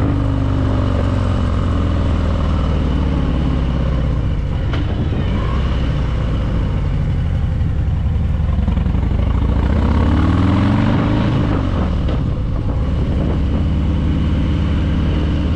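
A motorcycle engine rumbles steadily as the bike rides along.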